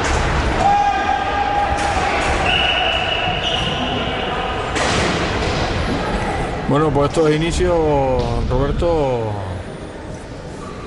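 Roller skates roll and scrape on a hard floor in an echoing hall.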